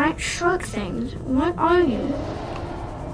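A child speaks excitedly into a close microphone.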